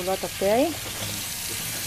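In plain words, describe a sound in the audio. Oil bubbles and sizzles in a pan.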